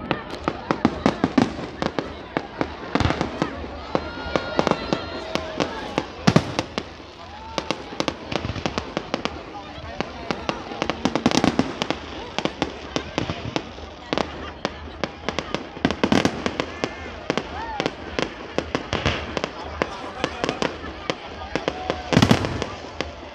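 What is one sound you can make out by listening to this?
Fireworks crackle and bang in the distance, over and over.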